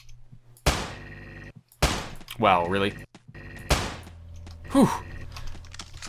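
A revolver fires single sharp shots.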